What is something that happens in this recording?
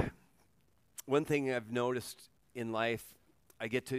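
An older man speaks slowly and calmly through a microphone.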